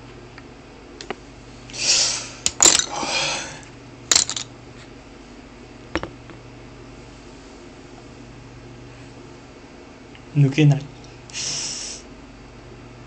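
Thin wooden sticks click and clatter against each other as they are pulled out.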